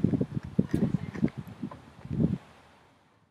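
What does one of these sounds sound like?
A young boy talks close by.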